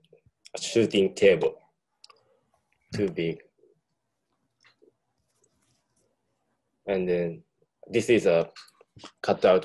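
A man speaks calmly over an online call, in short phrases with pauses.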